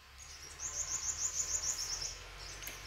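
A small bird chirps in a quick, high series.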